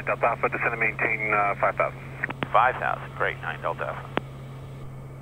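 A middle-aged man speaks calmly through a headset intercom.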